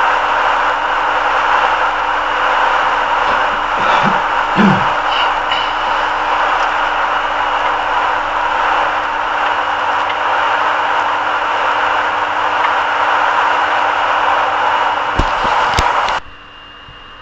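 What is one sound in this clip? Tyres hum and roar steadily on a wet road from inside a moving car.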